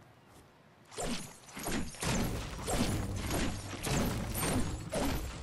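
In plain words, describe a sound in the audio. A pickaxe strikes wood again and again with sharp thuds.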